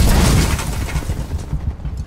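A loud explosion booms close by and rumbles away.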